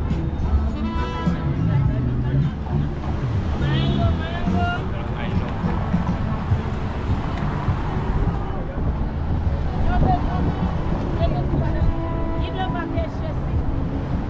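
A crowd of people chatters nearby on a busy street.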